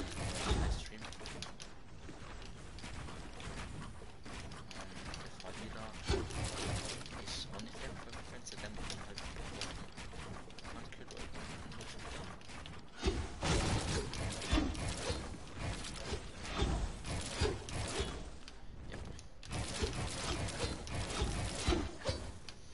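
Building pieces clatter rapidly into place in a video game.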